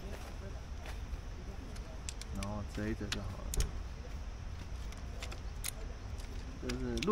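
A metal stand clicks and clinks as it is folded.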